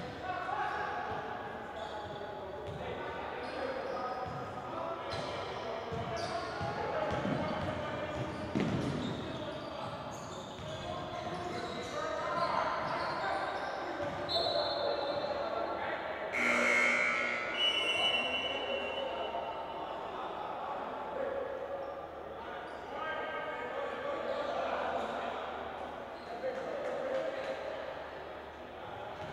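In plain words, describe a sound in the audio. Basketballs bounce on a hard court in a large echoing gym.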